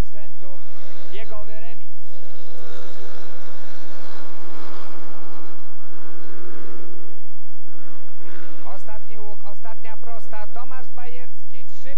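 Motorcycle engines roar and whine.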